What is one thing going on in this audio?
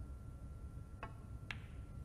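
A snooker cue strikes a ball with a sharp click.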